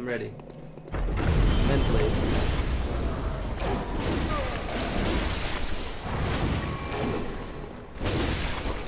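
Blades slash and clash in a fierce fight.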